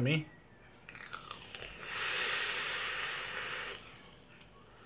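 A man draws a long breath through a vape.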